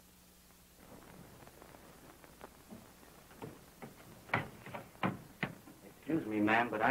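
Footsteps thud on wooden stairs.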